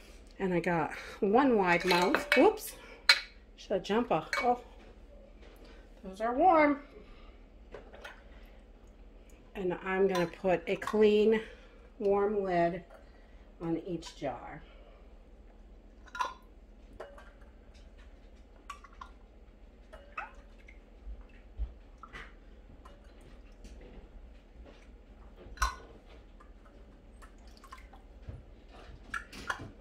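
A plastic utensil pokes and taps inside a glass jar.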